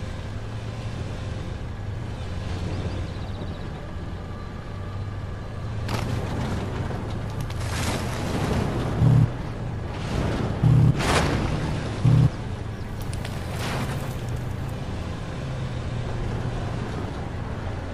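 A tank engine rumbles as the tank drives.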